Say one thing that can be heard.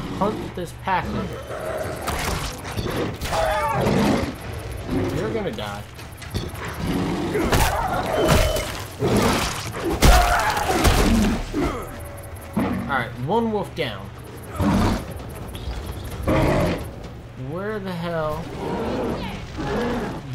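A bear roars and growls loudly.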